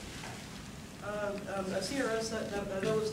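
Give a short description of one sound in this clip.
A man lectures calmly into a microphone.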